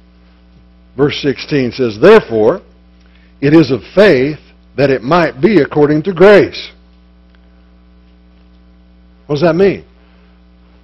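An older man reads aloud calmly through a microphone.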